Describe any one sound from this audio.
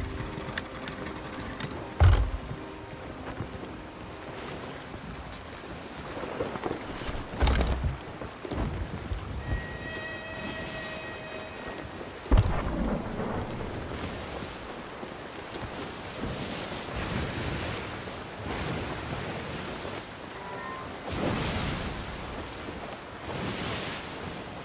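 Waves surge and splash against a wooden ship's hull.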